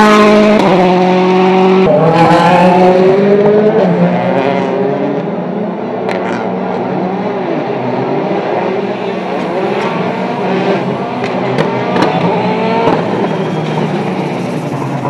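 A turbocharged four-cylinder rally car engine revs hard through gear changes.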